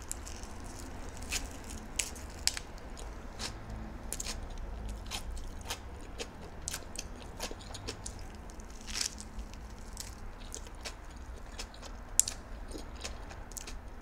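A woman chews food close to a microphone, with crisp wet crunches and smacking.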